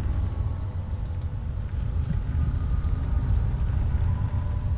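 Soft menu clicks sound in a video game.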